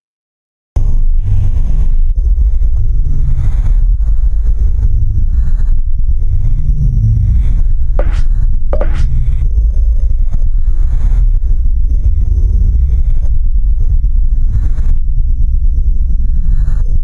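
Loud electronic music with a heavy, thumping bass plays.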